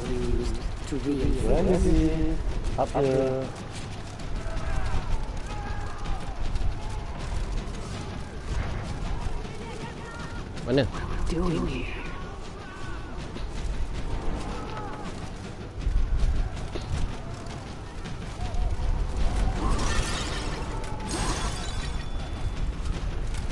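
Heavy footsteps crunch over snow and gravel.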